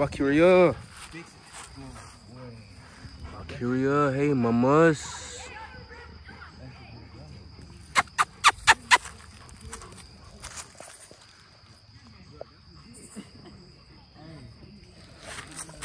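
A dog pants heavily.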